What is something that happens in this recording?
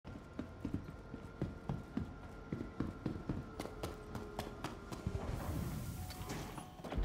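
Footsteps thud steadily on a hard metal floor.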